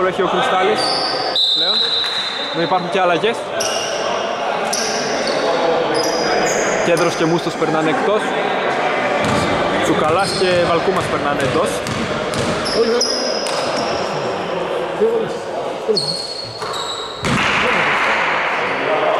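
Men talk and call out across a large echoing hall.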